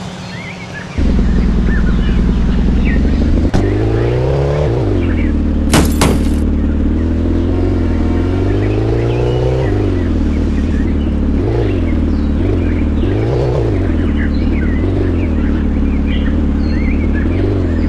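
A car engine rumbles and revs up and down.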